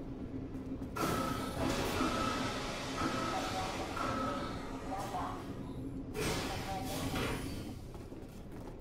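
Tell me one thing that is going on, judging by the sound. Air hisses loudly.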